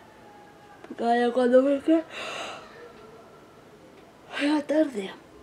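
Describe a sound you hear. A woman yawns loudly and groans.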